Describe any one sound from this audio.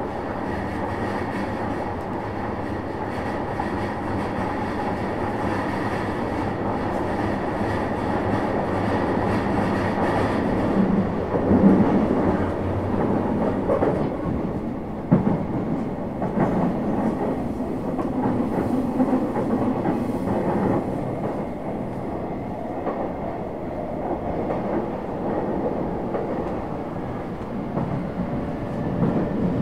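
A train car rumbles and rattles steadily as it runs along the tracks.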